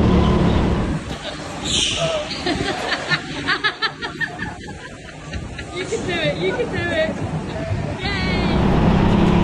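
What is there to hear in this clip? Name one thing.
Young men laugh and shout together.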